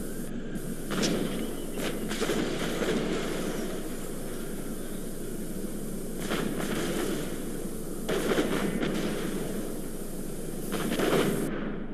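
Explosions boom in short bursts.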